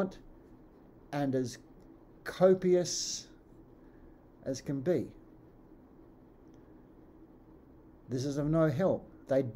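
An older man speaks calmly in short phrases with pauses, close to the microphone.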